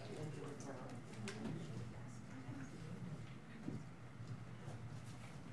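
Several men and a woman talk quietly at a distance in a room.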